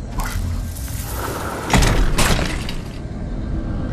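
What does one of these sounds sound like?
An office chair clatters over onto the floor.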